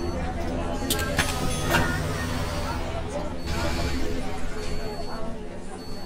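Bus doors hiss open with a burst of air.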